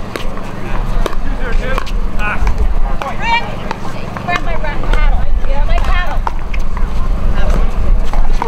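Adult players call out and chat nearby outdoors.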